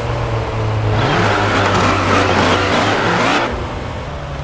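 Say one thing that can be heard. Tyres screech and skid on asphalt.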